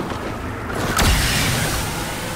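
A gun fires with a sharp bang.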